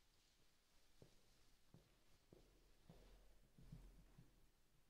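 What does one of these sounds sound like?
Footsteps tap faintly on a hard floor.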